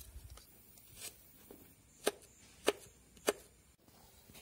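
A knife chops sharply on a cutting board.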